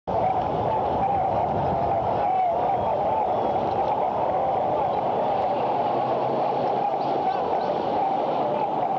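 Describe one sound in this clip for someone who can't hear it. A large crowd cheers and roars loudly and steadily.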